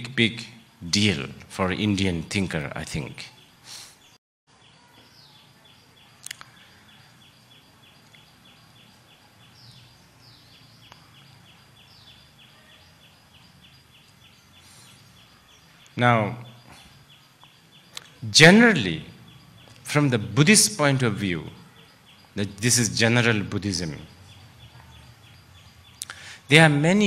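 An elderly man speaks calmly through a microphone, with pauses.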